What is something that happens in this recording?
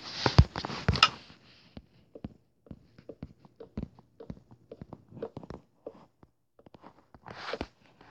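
Wooden blocks are placed with short, soft thuds.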